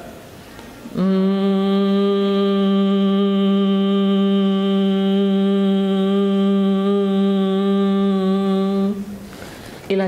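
A woman hums a long, steady low note.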